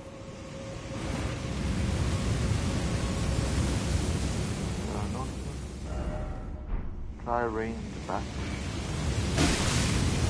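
Flames roar loudly in bursts.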